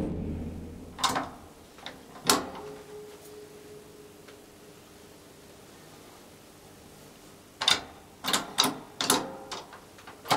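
Elevator buttons click as a finger presses them.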